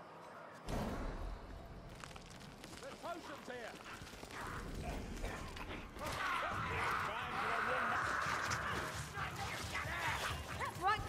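Young men talk and laugh with animation over a microphone.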